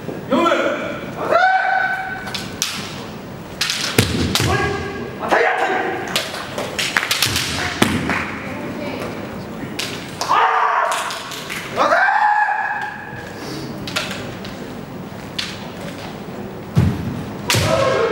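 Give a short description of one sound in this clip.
Feet stamp on a wooden floor.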